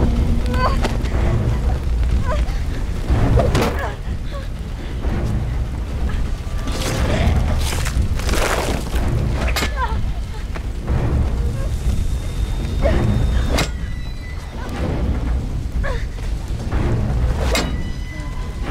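Heavy blows thud and crash.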